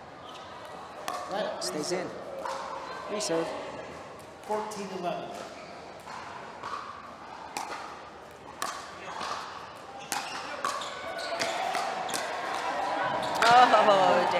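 Paddles strike a plastic ball back and forth with sharp pops.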